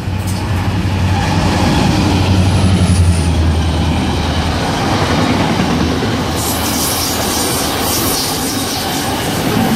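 Freight wagons clatter and rumble past on the rails.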